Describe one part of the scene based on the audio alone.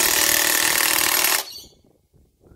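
An impact wrench whirs and hammers loudly.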